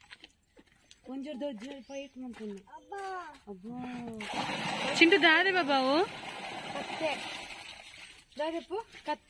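A young woman talks gently nearby.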